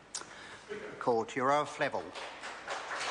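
An elderly man speaks into a microphone, calmly and formally.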